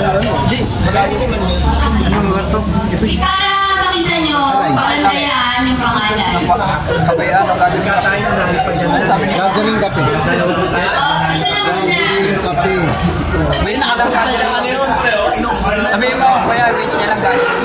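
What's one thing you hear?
A woman speaks loudly into a microphone, heard through a loudspeaker.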